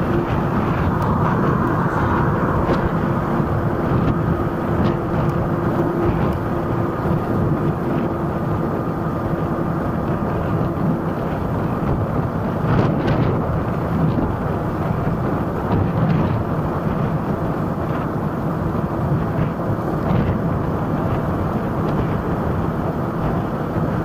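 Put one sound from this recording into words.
Wind rushes loudly past a moving scooter.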